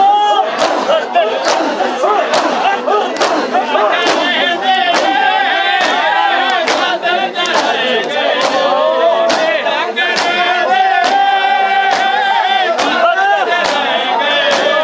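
A large crowd of men chants loudly together outdoors.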